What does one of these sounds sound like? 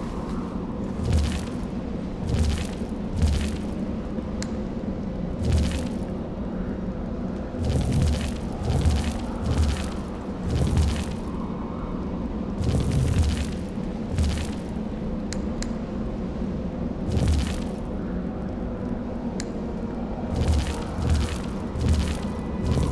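A heavy stone ring turns with a deep, grinding rumble, again and again.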